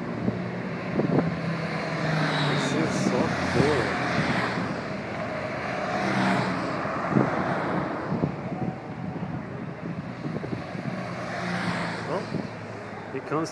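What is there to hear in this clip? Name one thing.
Motorcycle engines rumble as motorcycles ride past close by.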